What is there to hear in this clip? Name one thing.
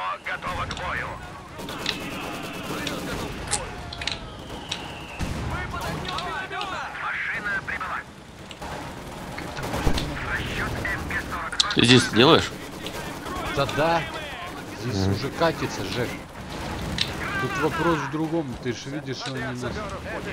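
Gunfire crackles in a battle.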